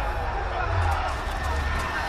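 A fire crackles.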